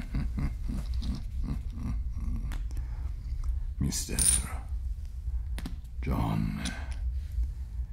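Poker chips click together.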